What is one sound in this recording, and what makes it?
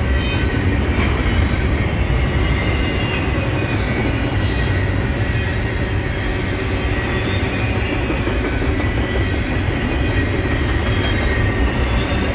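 A long freight train rumbles past on the tracks nearby.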